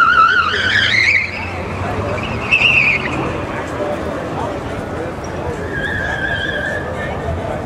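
Tyres squeal loudly as a car turns sharply.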